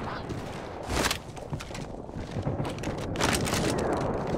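A rifle clatters as it is picked up.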